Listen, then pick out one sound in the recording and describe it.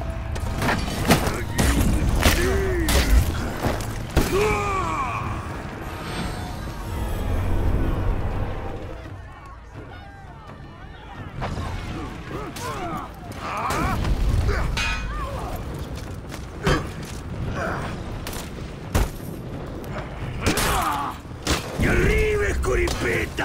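Warriors grunt and shout as they fight.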